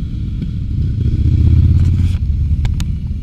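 A motorcycle engine roars loudly as it passes nearby.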